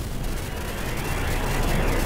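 An electric spark bursts with a sharp crackle.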